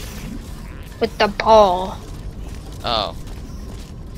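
A small robot chirps and warbles in electronic tones.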